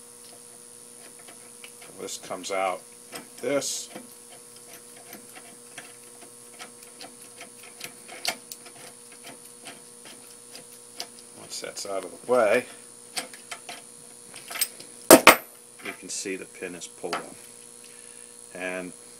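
Metal parts click and rattle.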